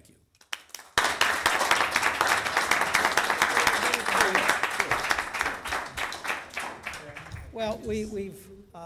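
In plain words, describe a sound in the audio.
An audience applauds in a room.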